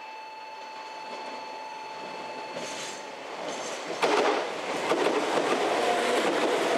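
A train approaches and rumbles past close by on the tracks.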